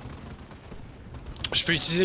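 Guns fire in short bursts.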